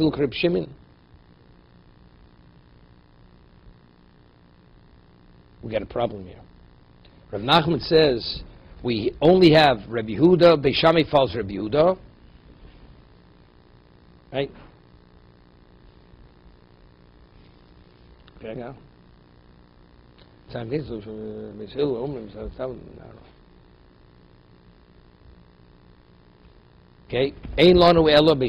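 An elderly man speaks calmly and haltingly into a close microphone.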